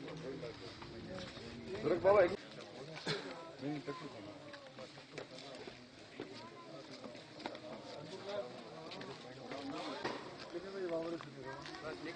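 Several men talk close by in a lively, overlapping way.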